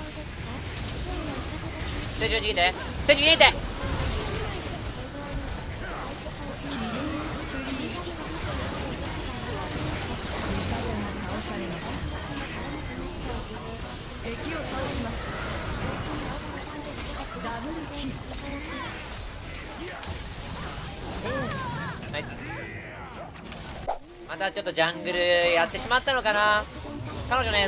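Video game spell effects whoosh and clash.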